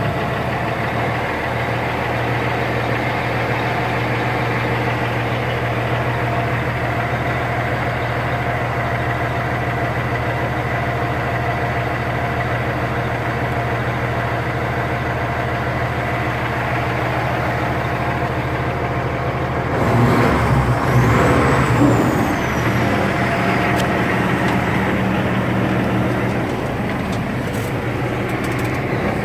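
A Cummins ISX diesel semi truck idles, heard from inside the cab.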